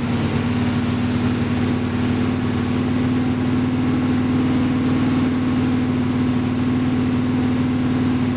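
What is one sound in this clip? A car engine idles with a steady, loud rumble.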